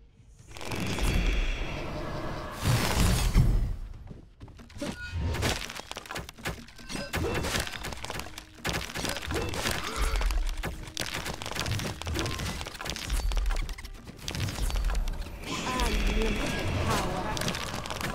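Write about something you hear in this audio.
Heavy impacts thud and boom.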